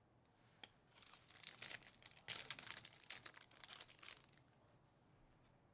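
Foil card packs crinkle and tear open.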